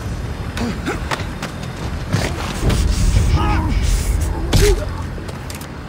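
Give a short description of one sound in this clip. A body thumps heavily onto hard ground.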